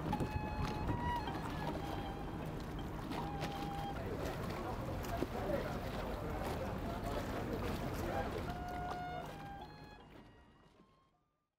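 Wind blows across open water.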